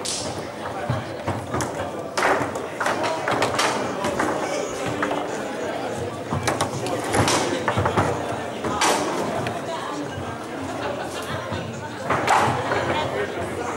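A foosball ball clacks sharply against the rods and the sides of the table.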